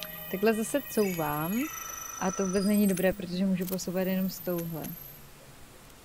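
A young woman speaks with animation close to a microphone.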